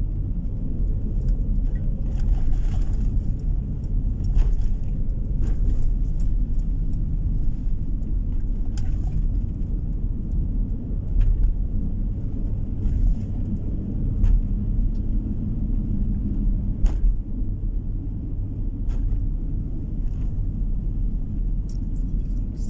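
A vehicle engine hums low and steady while driving.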